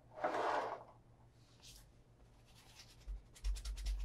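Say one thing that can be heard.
A leather shoe is lifted from a wooden table.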